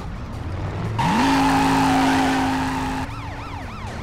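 Car tyres screech loudly on pavement.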